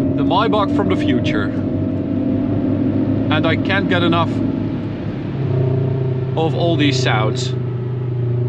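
Tyres roar steadily on a road at high speed inside a car.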